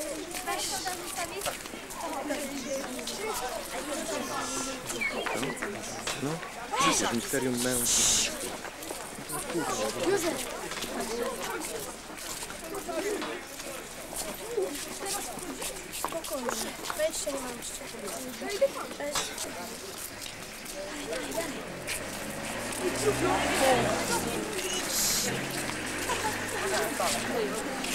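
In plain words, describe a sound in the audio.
A crowd of children and adults chatters nearby outdoors.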